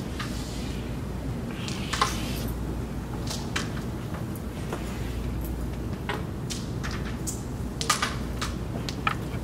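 Carrom pieces click sharply against each other on a wooden board.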